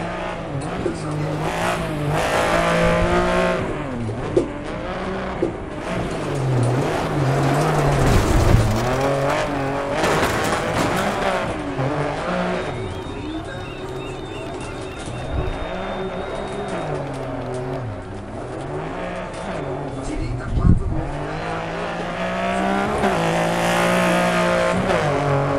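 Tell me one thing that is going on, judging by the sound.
Gravel sprays and rattles under spinning tyres.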